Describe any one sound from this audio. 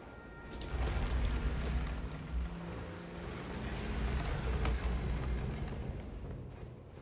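A heavy door grinds and rumbles slowly open.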